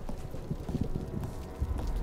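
Rain falls steadily outside.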